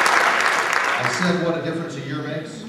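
A man speaks through a microphone in a large hall.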